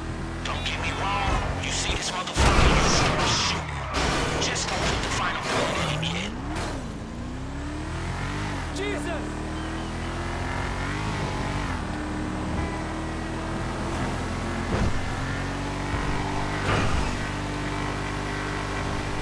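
A car engine revs and roars steadily as it speeds along.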